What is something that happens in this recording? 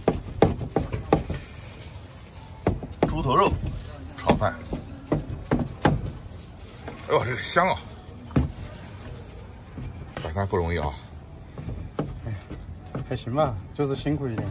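A cleaver chops meat on a wooden board with sharp knocks.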